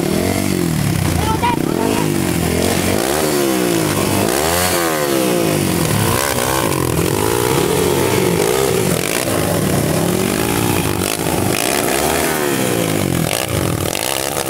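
A dirt bike engine revs loudly up and down, close by.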